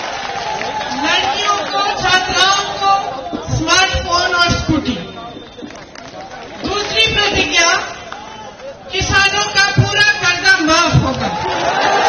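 A woman speaks forcefully into a microphone through loudspeakers outdoors.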